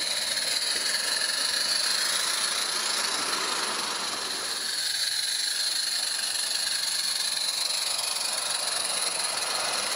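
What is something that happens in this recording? A small steam engine hisses and puffs softly.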